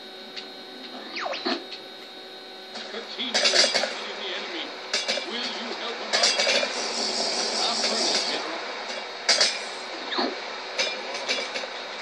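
Cartoonish creature voices grunt and murmur through a television speaker.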